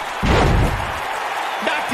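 A body slams heavily onto a wrestling mat with a loud thud.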